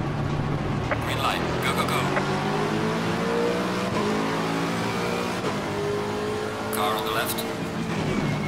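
A racing car engine revs up hard as it accelerates through the gears.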